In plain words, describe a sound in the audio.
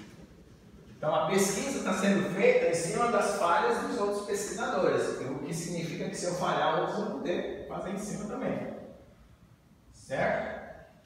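A middle-aged man speaks calmly, lecturing.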